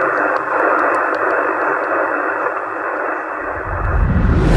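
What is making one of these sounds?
A radio receiver hisses with loud, steady static.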